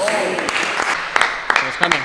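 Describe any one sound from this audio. A small group of people clap.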